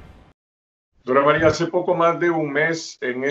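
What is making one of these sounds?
An older man speaks calmly over an online call.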